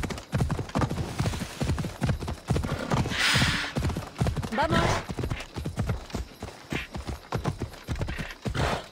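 A horse gallops with heavy, rhythmic hoofbeats on rough ground.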